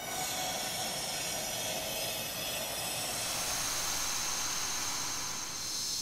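A bright, shimmering magical chime rings out steadily and swells.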